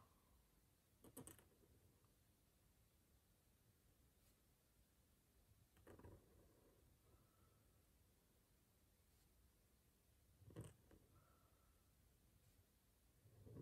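A brush pen writes on paper.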